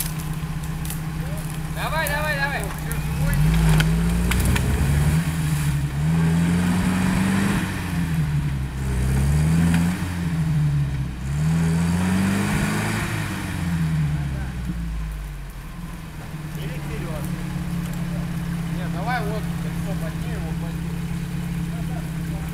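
An off-road vehicle's engine idles and revs up and down repeatedly, close by.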